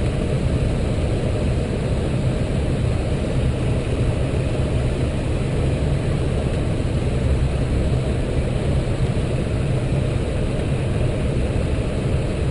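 Jet engines and rushing air roar steadily inside an airliner's cockpit.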